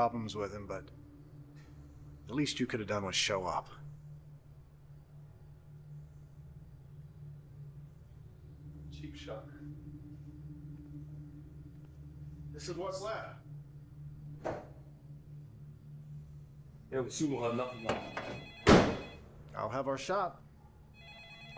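An elderly man talks calmly and close by.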